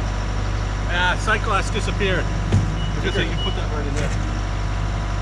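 A man talks over the engine noise.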